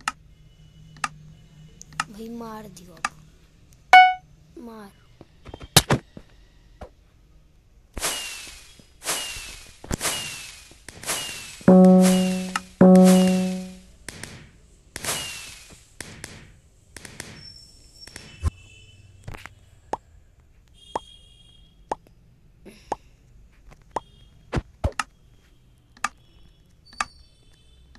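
A game's countdown ticks once a second with short clicks.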